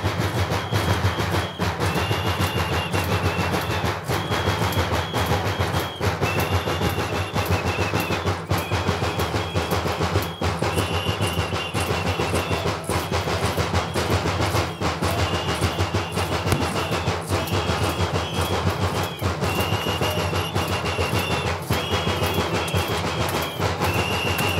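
Many drums beat fast and loud in a steady rhythm.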